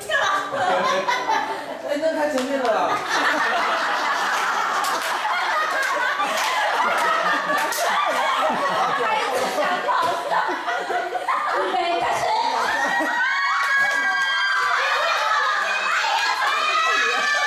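Young women laugh and shout with excitement nearby.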